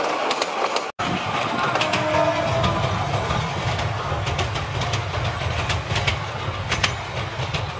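A diesel locomotive rumbles deeply as it approaches.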